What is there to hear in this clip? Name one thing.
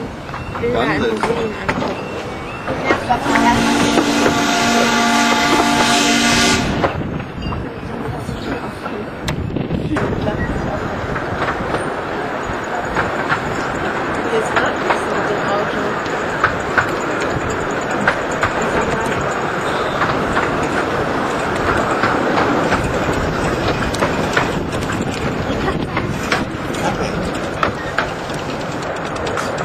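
Train carriages rumble and rattle along a track, with wheels clicking over rail joints.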